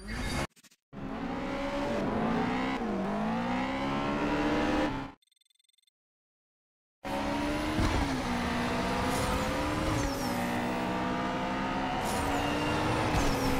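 A racing car engine roars and revs up and down.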